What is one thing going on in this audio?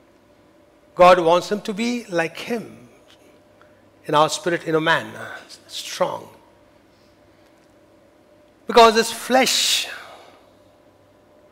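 A middle-aged man speaks with animation through a microphone, in pauses.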